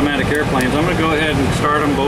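A switch knob clicks as it is turned.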